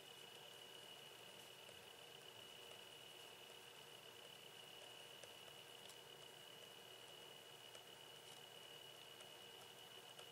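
A pen writes on paper with soft scratching.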